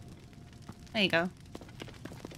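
A young woman exclaims briefly and close by into a microphone.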